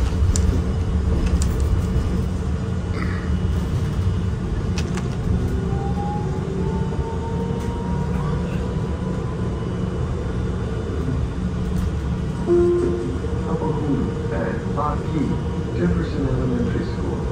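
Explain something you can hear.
Loose panels rattle and clink inside a moving bus.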